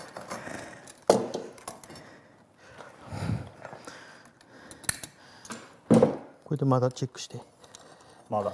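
Metal pliers click and snap against wire.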